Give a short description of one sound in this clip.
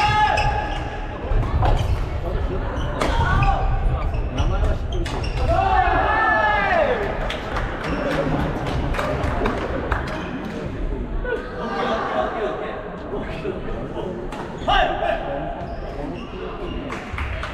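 Men and women call out and chatter in an echoing hall.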